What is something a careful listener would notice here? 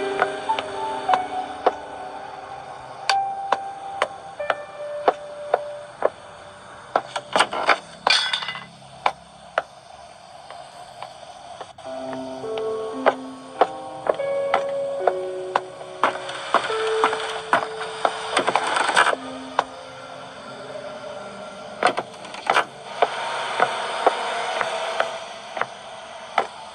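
Fingertips tap on a tablet's glass.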